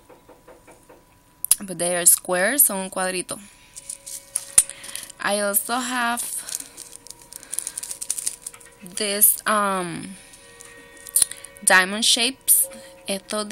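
A small plastic bag crinkles as it is handled.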